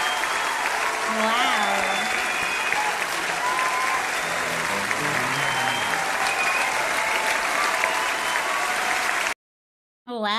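A rock band plays live.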